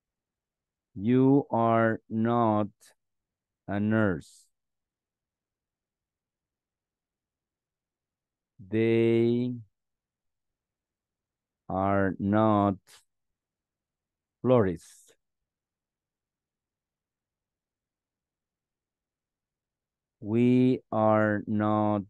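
A man speaks slowly in short phrases over an online call.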